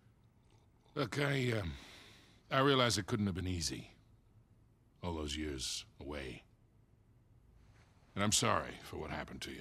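An older man speaks calmly and gently, close by.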